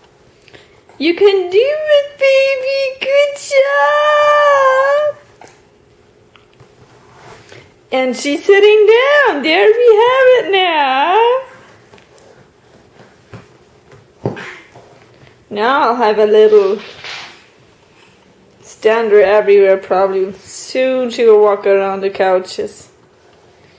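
A baby babbles and squeals loudly close by.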